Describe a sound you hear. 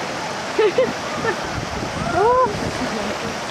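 Young men shout and call out across the water.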